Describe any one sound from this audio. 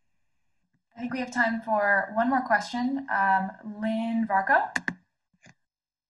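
An older man speaks calmly through an online call.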